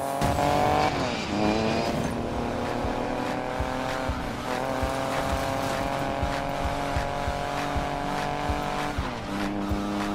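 A car engine briefly drops in pitch at each gear change.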